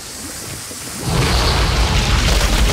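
A fire bursts up and roars.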